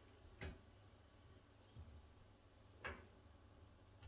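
Something small taps against a wall.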